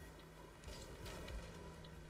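A ball is struck with a hollow thud.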